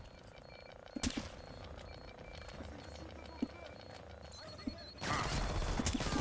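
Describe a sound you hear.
A silenced rifle fires with a sharp muffled crack.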